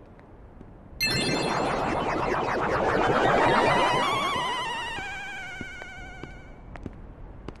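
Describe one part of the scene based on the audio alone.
A magical shimmering chime swells and fades.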